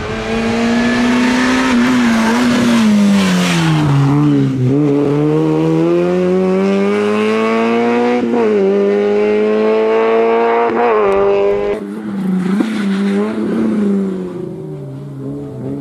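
A rally car engine roars loudly close by, revving up and down through the gears.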